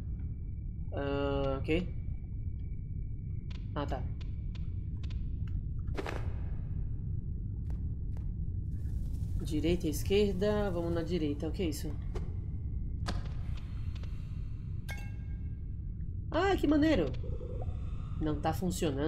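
A young man talks close to a microphone, now and then with animation.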